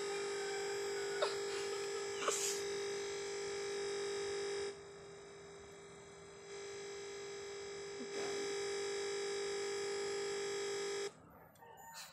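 A computer gives off a steady high electronic whine.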